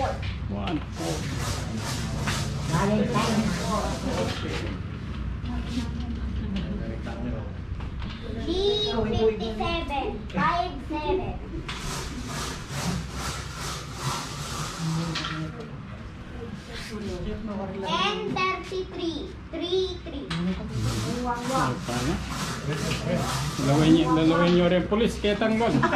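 Several women and men chat and laugh nearby.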